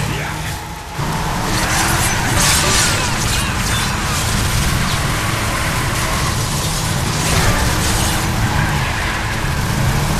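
Water splashes and sprays loudly.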